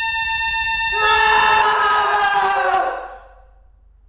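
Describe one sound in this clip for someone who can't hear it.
A second young man joins in with a loud, frightened scream.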